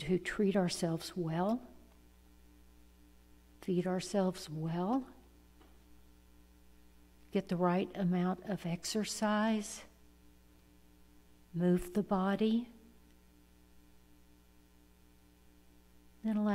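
An elderly woman speaks calmly into a microphone, in short phrases with pauses.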